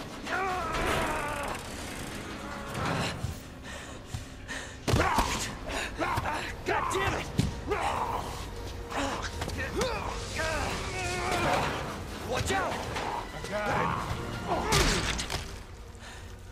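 A young man grunts and strains as he struggles.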